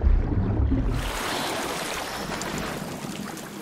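Water splashes as a swimmer surfaces.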